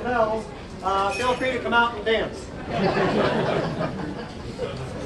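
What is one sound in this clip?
A man speaks loudly to a crowd.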